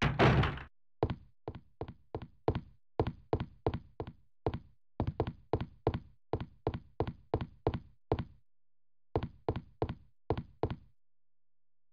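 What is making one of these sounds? Footsteps thud quickly on a wooden floor.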